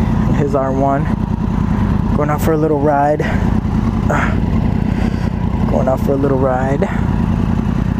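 A motorcycle engine revs up sharply several times.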